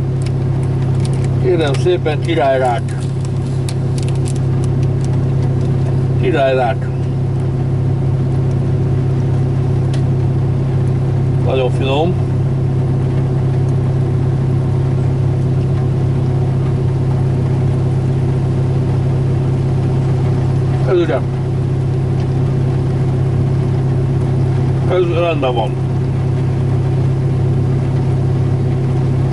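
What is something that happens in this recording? A diesel engine idles with a steady low drone.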